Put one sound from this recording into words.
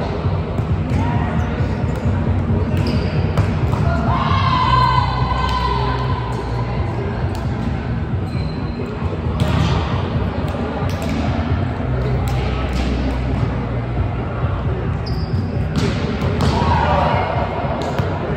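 Players call out to each other in a large echoing hall.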